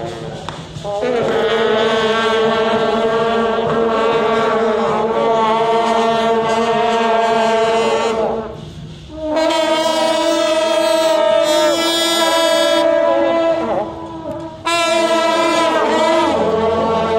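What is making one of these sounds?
A brass band plays loud, held notes outdoors, with short pauses.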